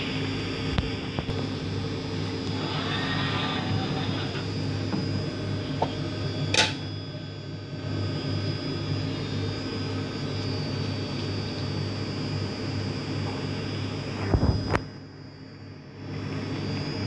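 A machine hums steadily with a low drone.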